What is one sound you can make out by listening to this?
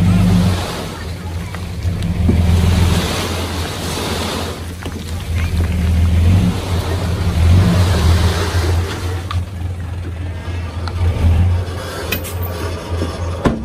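Loose dirt slides and tumbles out of a tipping truck bed.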